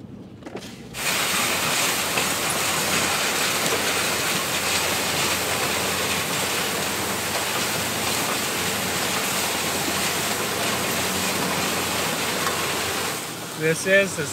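A tractor pulls a disc harrow through dry stalks with a loud rumbling roar.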